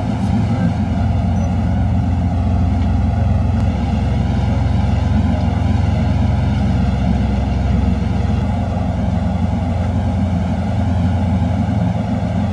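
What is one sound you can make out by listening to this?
A tour boat's engine drones as the boat moves over the water.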